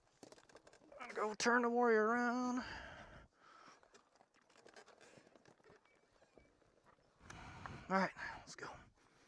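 A man groans loudly with strain, close by.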